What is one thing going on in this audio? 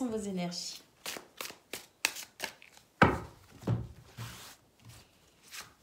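Playing cards flick and slap softly as they are shuffled by hand.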